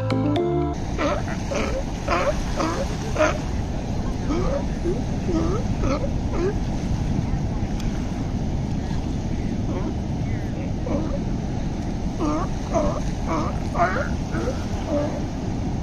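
Sea lion pups bleat and bark in short, wavering cries.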